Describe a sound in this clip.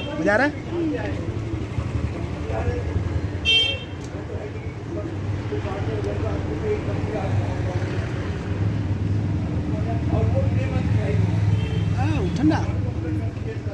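A young boy talks close by.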